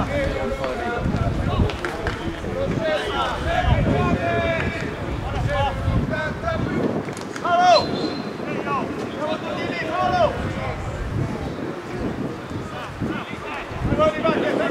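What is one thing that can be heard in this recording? Spectators chatter and shout outdoors.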